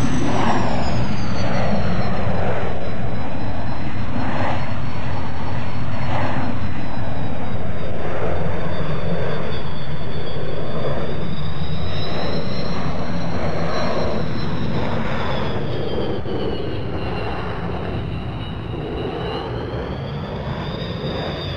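A jet airliner's engines roar steadily with a high whine that slowly wavers in pitch.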